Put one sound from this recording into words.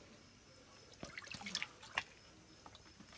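Water splashes in a plastic tub as a fish is rinsed.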